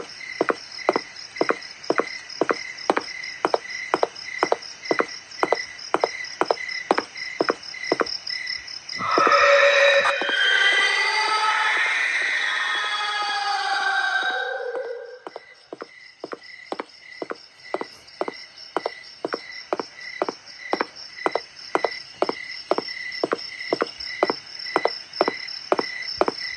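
Footsteps tread on grass at a steady pace.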